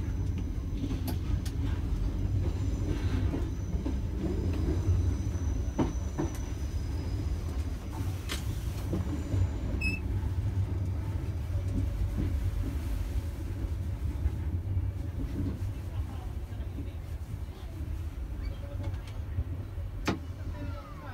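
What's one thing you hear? Train wheels click and clatter over rail joints.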